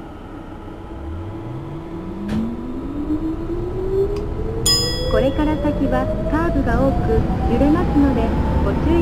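An electric train motor whines, rising steadily in pitch as the train speeds up.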